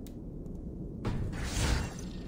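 A deep whoosh swells up and fades.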